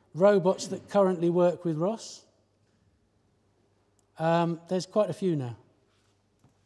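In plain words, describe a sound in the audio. A man speaks clearly to an audience in a hall.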